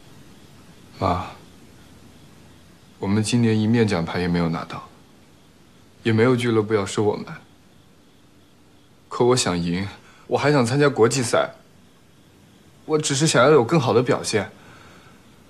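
A young man speaks quietly and earnestly, close by.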